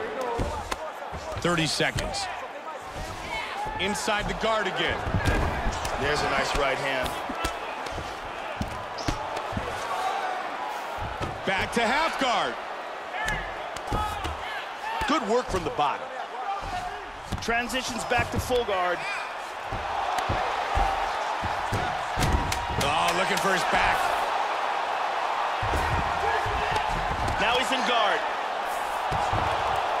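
Heavy punches thud repeatedly against a body.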